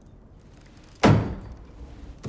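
A mug knocks down on a wooden table.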